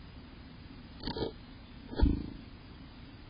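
A small bird knocks against a wooden nest box as it flutters out.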